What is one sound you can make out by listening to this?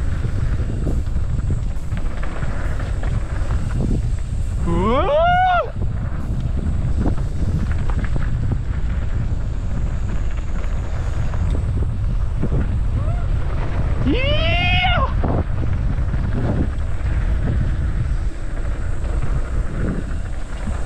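Wind rumbles steadily against the microphone while riding fast.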